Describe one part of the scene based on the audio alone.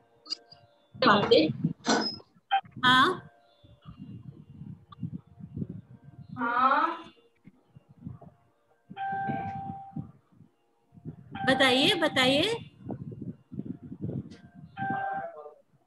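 A middle-aged woman talks calmly over an online call.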